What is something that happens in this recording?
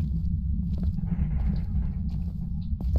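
A lighter is flicked and its flame flares up.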